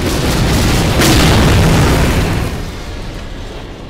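A helicopter explodes with a heavy, rumbling boom that slowly fades.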